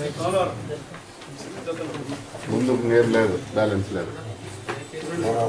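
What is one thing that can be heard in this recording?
An elderly man reads aloud in a measured, chanting voice, close by.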